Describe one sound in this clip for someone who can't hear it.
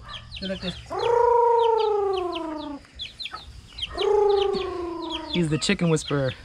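A rooster crows.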